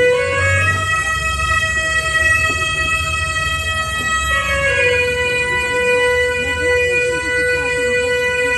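Music with a steady held melody plays through a loudspeaker in a large hall.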